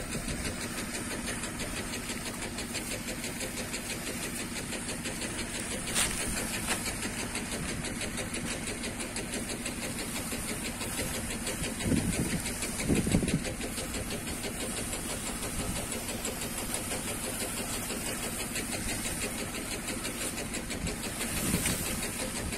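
A hose sprayer hisses steadily as it sprays water.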